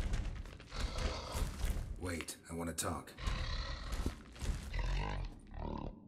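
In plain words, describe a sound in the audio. A man speaks calmly in a low, gravelly voice.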